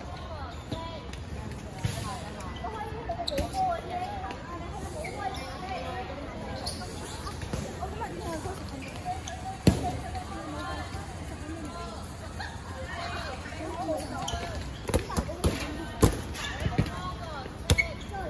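Basketballs bounce on an outdoor court.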